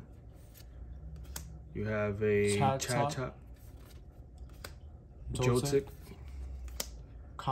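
Playing cards slide and flick against each other.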